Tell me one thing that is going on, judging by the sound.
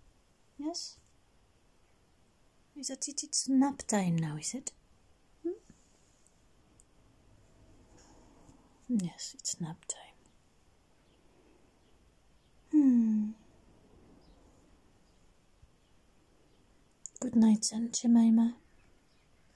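A young woman speaks softly and affectionately close by, in short bursts.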